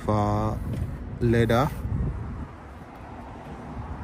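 A car door latch clicks and the door swings open.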